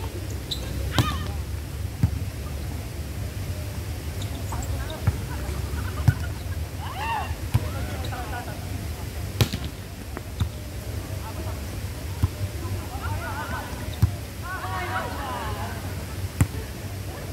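A volleyball is struck with sharp slaps again and again.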